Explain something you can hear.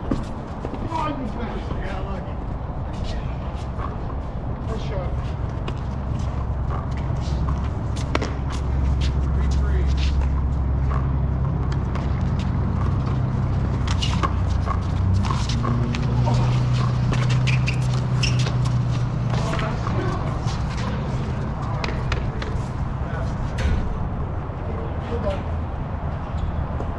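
Men's voices call out nearby outdoors.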